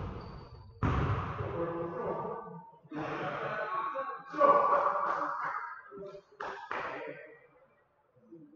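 Men talk and call out to each other in a large echoing gym.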